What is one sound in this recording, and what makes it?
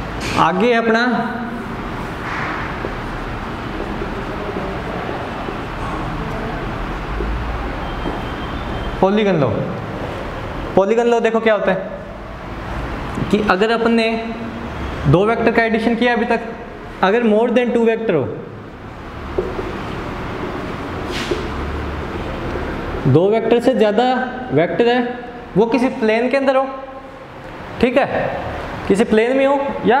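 A young man speaks clearly and steadily, close by.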